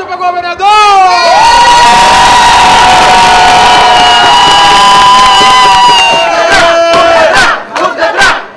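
A large crowd of men and women sings loudly together outdoors.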